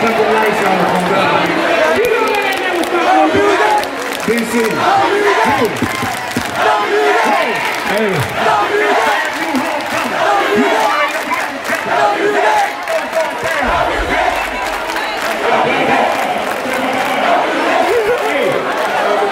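A large crowd cheers and screams throughout.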